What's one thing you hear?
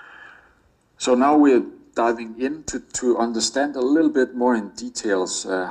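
A man speaks steadily over an online call through a loudspeaker.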